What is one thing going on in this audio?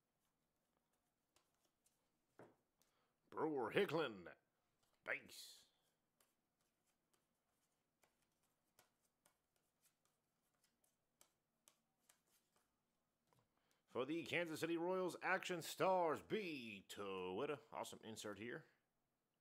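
Trading cards slide and flick against each other as they are sorted by hand.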